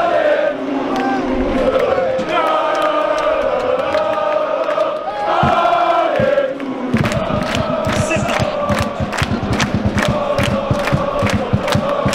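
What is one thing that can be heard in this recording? A large crowd of fans chants and sings loudly outdoors.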